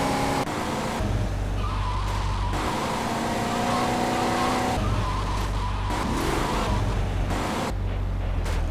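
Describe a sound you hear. A car engine roars as a car speeds along a road.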